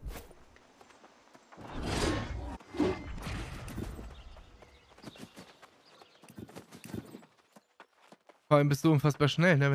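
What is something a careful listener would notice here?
Footsteps run quickly along a dirt path.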